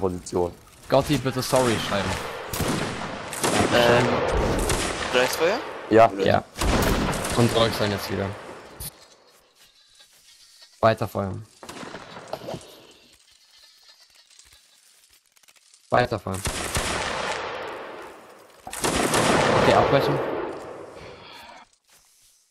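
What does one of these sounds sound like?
A volley of musket shots fires and booms, rolling away.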